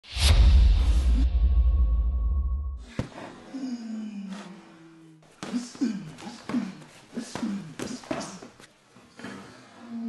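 Boxing gloves thud against each other.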